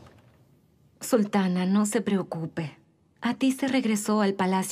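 A woman speaks calmly and closely, with a clear voice.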